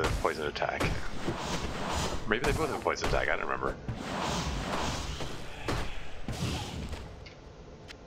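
Magic spells crackle and whoosh in bursts from a video game.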